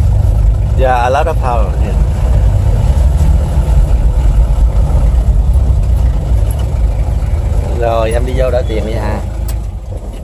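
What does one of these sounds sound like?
A man talks inside the car.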